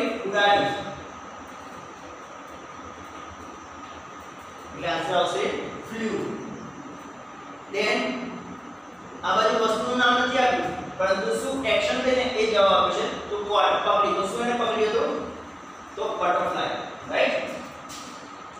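A young man speaks clearly and calmly, close by.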